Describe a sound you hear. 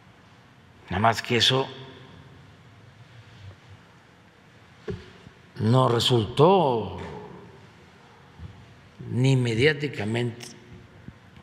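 An elderly man speaks slowly into a microphone in bursts, with long pauses.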